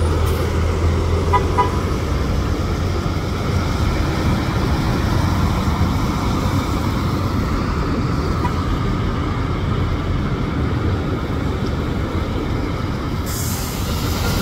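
A bus engine rumbles as a bus pulls away.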